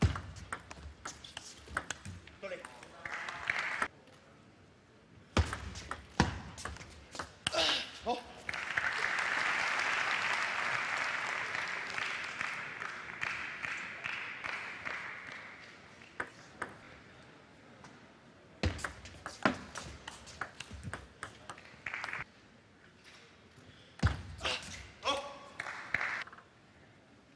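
A ping pong ball clicks rapidly back and forth off paddles and a table.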